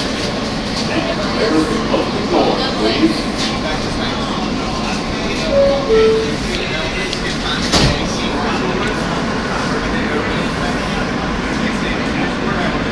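A subway train rumbles loudly along the tracks through a tunnel.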